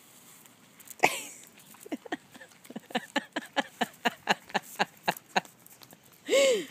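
A small shoe scrapes and taps along paved ground as a dog drags it.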